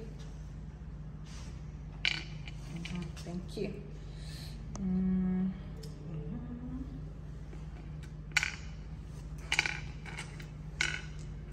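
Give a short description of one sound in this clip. Small stones click and clack as they drop into a wooden board's hollows.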